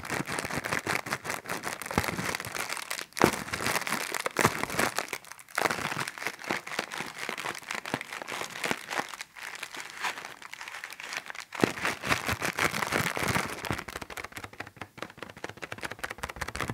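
Plastic wrapping crinkles and crackles close up.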